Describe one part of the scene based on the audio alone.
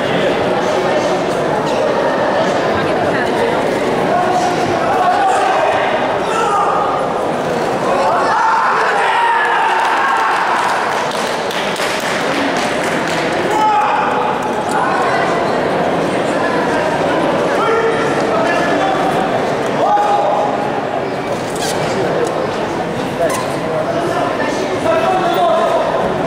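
A crowd of spectators murmurs and shouts throughout a large echoing hall.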